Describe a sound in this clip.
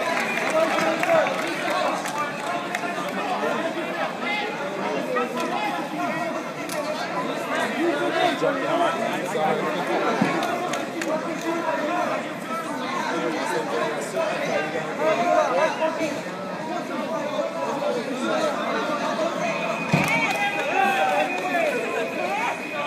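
A crowd of spectators talks and shouts in a large echoing hall.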